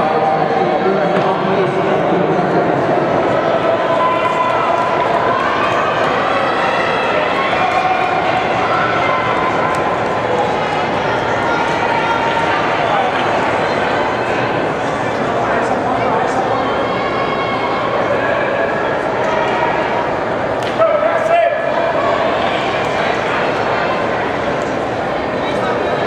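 A large crowd chatters indoors in a big echoing hall.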